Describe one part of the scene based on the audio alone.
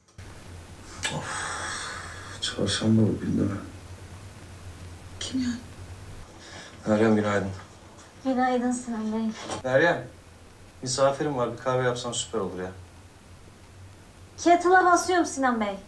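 A woman speaks quietly, heard through a loudspeaker.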